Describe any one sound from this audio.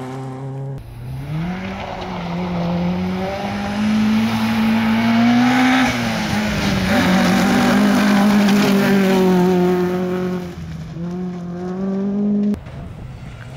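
A rally car engine roars closer, revving up and down through the gears as it speeds past.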